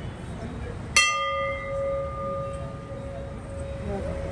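A metal bell is struck once and rings with a long, fading chime.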